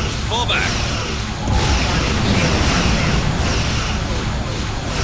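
Laser weapons fire and zap repeatedly.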